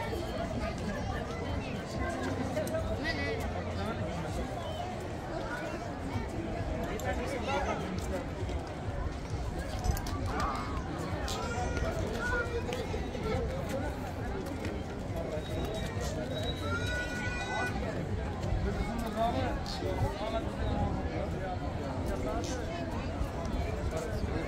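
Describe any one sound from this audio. A crowd of men, women and children chatters outdoors.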